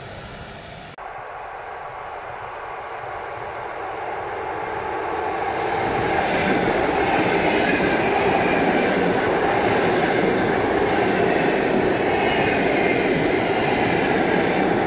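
A train approaches from a distance and roars past close by.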